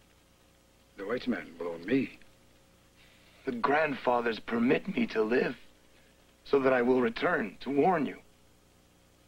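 An older man speaks in a low, measured voice.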